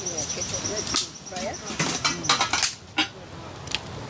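Wood knocks and clatters as sticks are handled.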